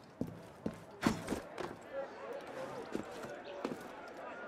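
Hands grab and scrape against stone while climbing.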